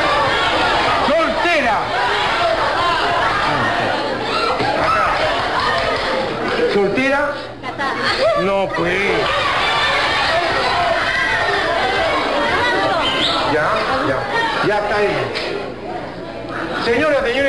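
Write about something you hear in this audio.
A studio audience chatters and laughs in the background.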